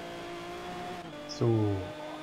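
A racing car engine shifts up a gear, its pitch dropping.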